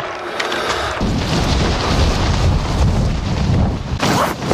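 Wind rushes past during a freefall.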